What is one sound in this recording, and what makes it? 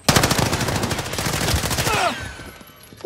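A rifle fires rapid bursts up close.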